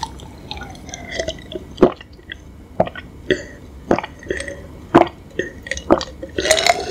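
A young woman gulps down a drink close to a microphone.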